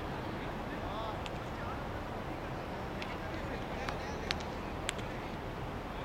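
Cricket players clap and cheer outdoors.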